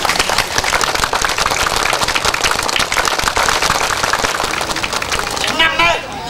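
A crowd claps loudly.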